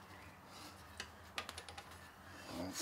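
Metal parts clink and click as a vise is shifted on a machine table.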